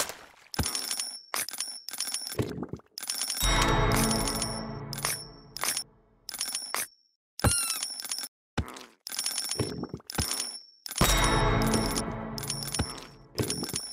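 Game sound effects chime and pop repeatedly as enemies are hit and coins are collected.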